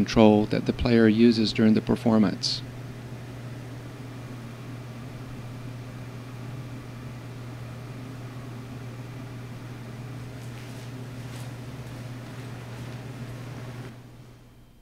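An electronic instrument gives off a steady low hum.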